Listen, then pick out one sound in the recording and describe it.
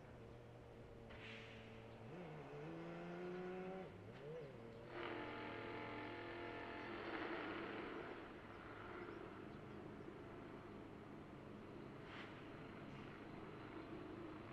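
A race car engine roars loudly, its pitch rising and falling.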